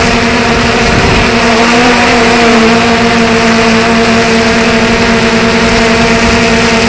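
Wind rushes over the drone.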